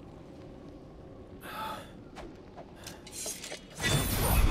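A young man speaks in a low voice.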